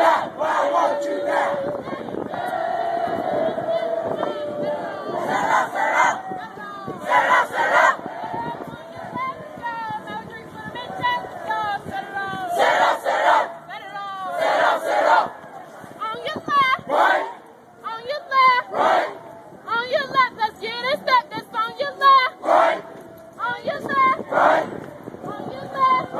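A young man shouts a marching cadence outdoors.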